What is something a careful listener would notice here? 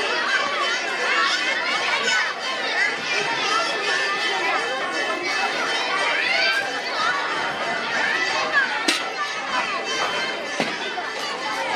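A lively crowd of men and women chatter and call out all around outdoors.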